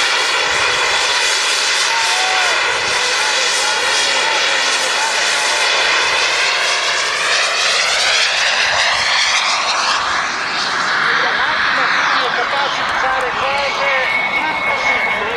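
A jet engine roars loudly overhead, its whooshing tone sweeping slowly as the aircraft passes.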